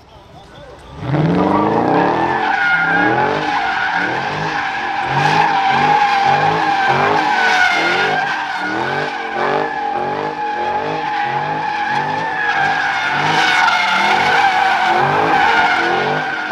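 A car engine revs hard in quick, repeated bursts.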